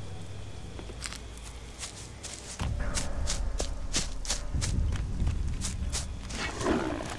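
Footsteps rustle steadily through grass.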